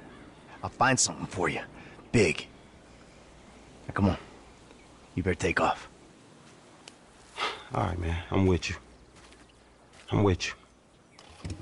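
A second man replies in a low voice, close by.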